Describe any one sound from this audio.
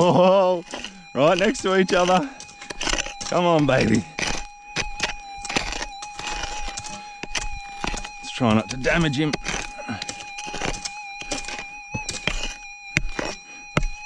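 A hoe strikes and scrapes through dry soil.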